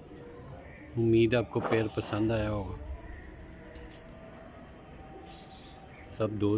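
Pigeons coo close by.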